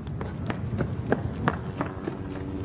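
Footsteps run quickly across a hard rooftop.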